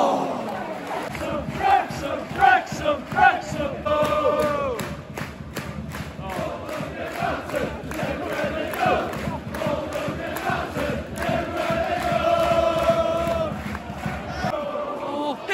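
Fans nearby clap their hands in rhythm.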